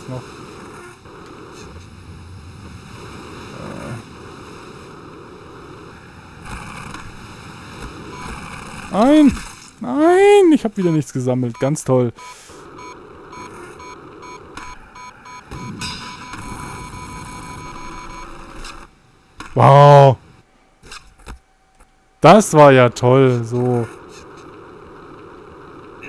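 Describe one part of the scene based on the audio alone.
Skateboard wheels roll steadily over concrete.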